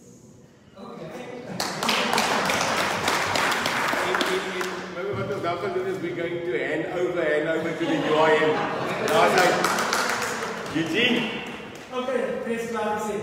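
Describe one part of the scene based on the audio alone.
A crowd of people murmurs and laughs in an echoing hall.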